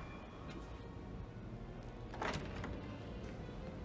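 A wooden door swings open.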